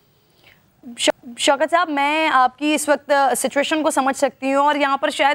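A young girl speaks through a microphone.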